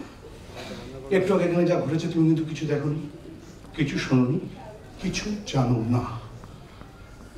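A younger man speaks loudly and theatrically.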